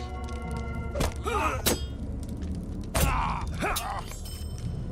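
Weapons clash in a short fight.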